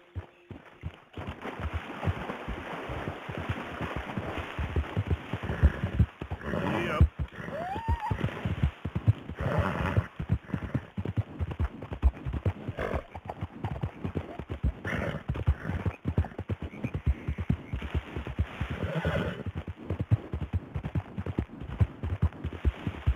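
Horse hooves thud rhythmically on grass and dirt.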